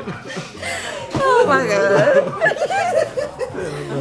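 Several people laugh loudly close by.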